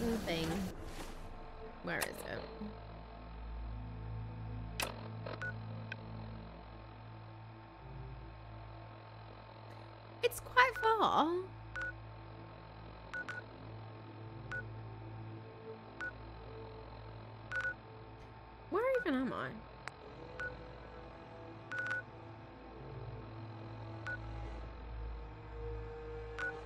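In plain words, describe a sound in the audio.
A handheld device clicks and beeps as menus change.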